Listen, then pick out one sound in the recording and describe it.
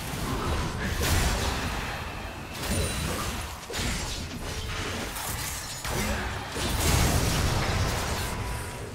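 Spells whoosh and blast in a hectic video game fight.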